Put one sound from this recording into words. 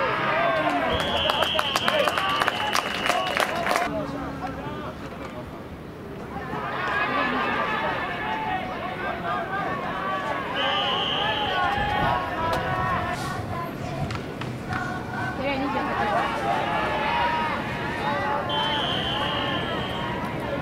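A referee's whistle blows shrilly several times.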